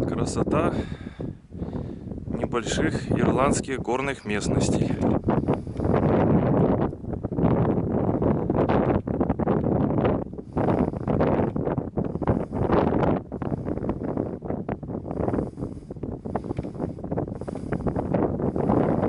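Wind gusts roar outdoors, buffeting the microphone.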